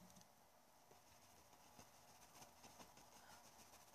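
A paintbrush dabs softly on canvas.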